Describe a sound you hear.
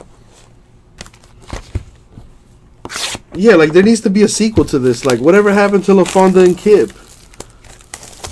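A cardboard box rustles and taps as hands handle it.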